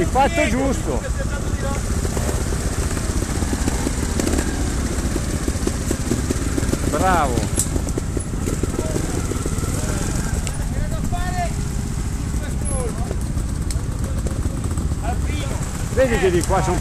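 A motorbike engine revs up in short bursts.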